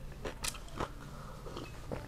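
A woman sips a drink.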